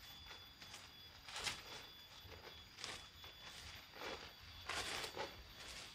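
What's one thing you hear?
A tool scrapes and digs into soil in short bursts.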